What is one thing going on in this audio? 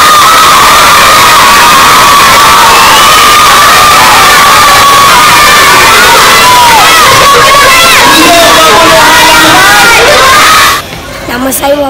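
A crowd of children shouts and cheers loudly in an echoing hall.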